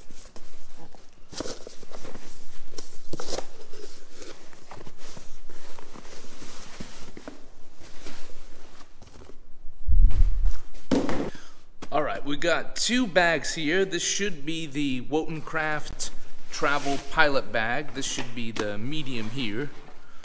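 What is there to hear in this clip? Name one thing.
Fabric bags rustle as they are handled.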